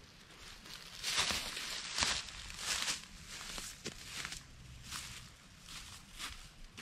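Footsteps crunch through dry leaves outdoors.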